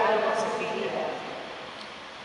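A young man speaks briefly, echoing in a large hall.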